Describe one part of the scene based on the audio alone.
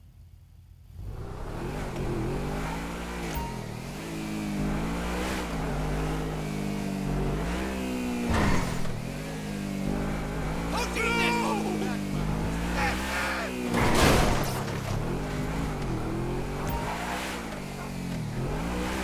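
A sports car engine revs and roars, rising and falling in pitch as it speeds up and shifts gears.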